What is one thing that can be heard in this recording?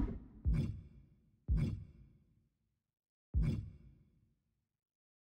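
Short game menu sounds click as the choice changes.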